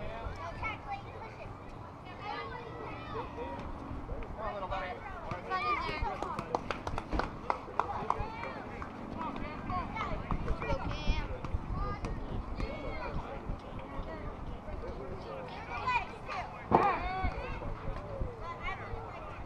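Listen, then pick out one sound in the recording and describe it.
Children and adults call out and cheer nearby outdoors.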